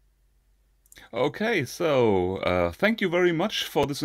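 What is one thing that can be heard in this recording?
A man speaks with animation through an online call microphone.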